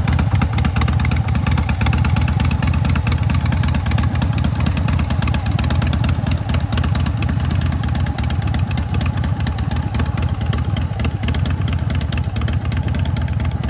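A motorcycle engine idles nearby with a deep, steady throbbing rumble.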